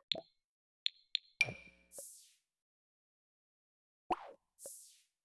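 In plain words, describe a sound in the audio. Short soft clicks sound several times.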